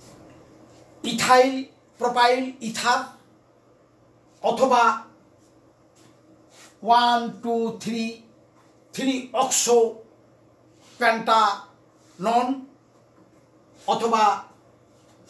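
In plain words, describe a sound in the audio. A middle-aged man speaks calmly in short bursts, close by.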